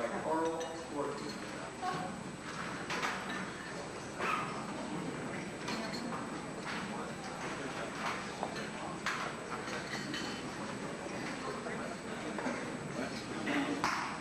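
An orchestra plays in a large echoing hall.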